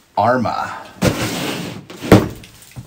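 A cardboard box is set down and slides across a table.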